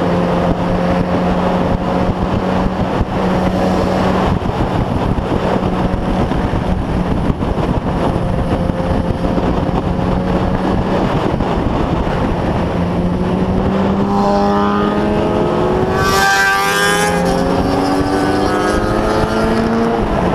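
A motorcycle engine hums steadily up close as it rides along.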